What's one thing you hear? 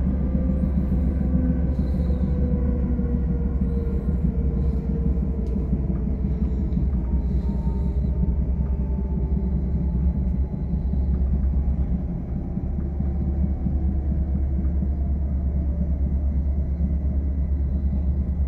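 Train wheels hum with a slowly falling whine.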